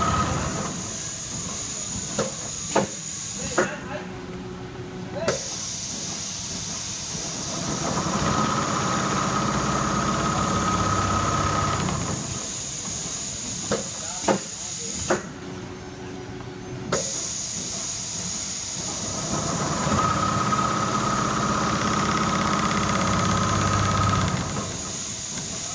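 Embroidery machines whir and hum steadily.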